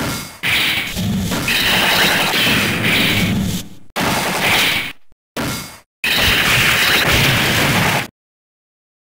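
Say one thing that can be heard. Loud arcade game gunfire and machine noise blast and rumble.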